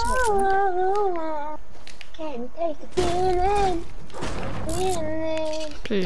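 A pickaxe strikes a wire fence with sharp metallic clanks.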